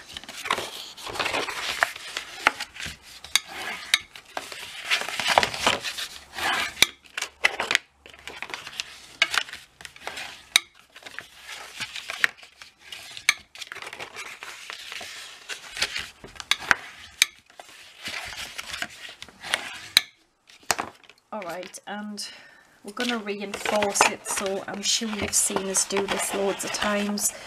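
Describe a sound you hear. Stiff paper rustles and crackles as it is handled and folded.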